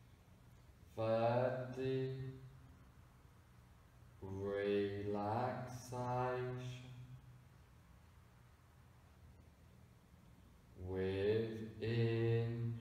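A man speaks calmly and slowly, close by, with long pauses.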